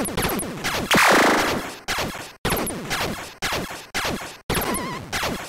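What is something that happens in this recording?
Retro arcade laser shots fire in quick bursts.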